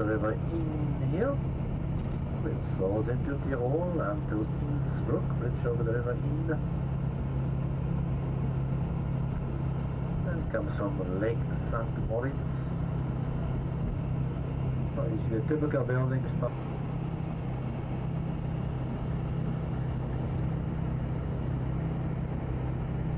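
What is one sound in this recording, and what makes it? A train rumbles along the tracks, heard from inside a carriage.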